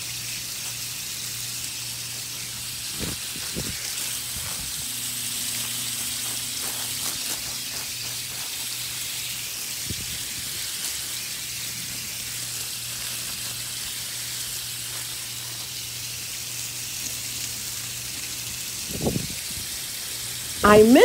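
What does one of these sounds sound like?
Water from a hose sprays and patters steadily onto leaves and soil.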